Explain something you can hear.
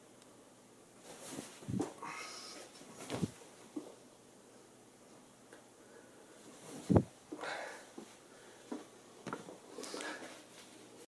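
A man makes short, breathy vocal sounds close by.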